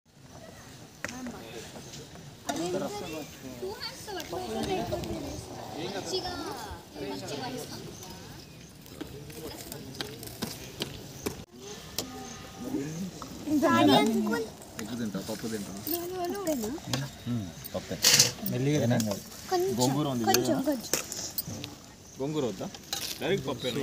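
Men and women talk at once outdoors, close by.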